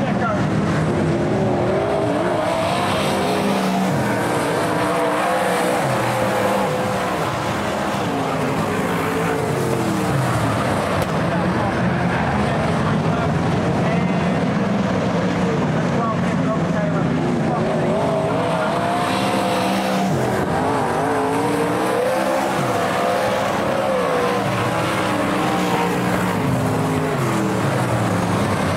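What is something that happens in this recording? Loud race car engines roar and whine as they speed past, rising and falling in pitch.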